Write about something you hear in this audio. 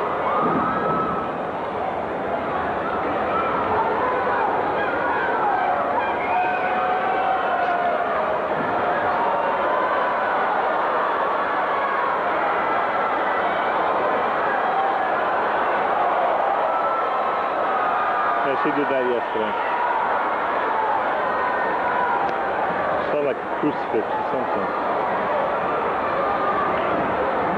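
A large arena crowd shouts and cheers throughout.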